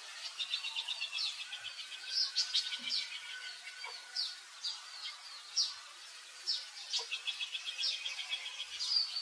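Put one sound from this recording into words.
A baby monkey squeaks and chirps in high, rapid cries.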